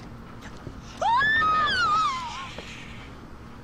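A woman screams in fright.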